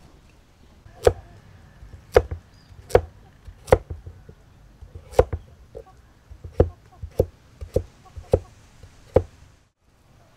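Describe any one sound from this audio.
A knife slices through a carrot, knocking sharply on a wooden board.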